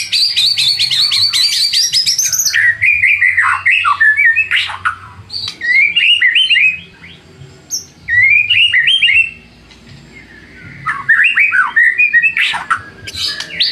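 A songbird sings loud, varied whistling phrases close by, with rapid trills and chirps.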